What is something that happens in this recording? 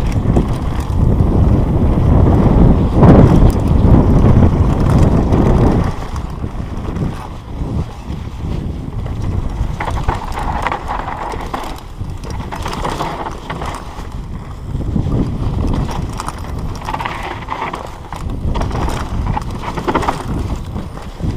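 A bike's chain and frame rattle over bumps.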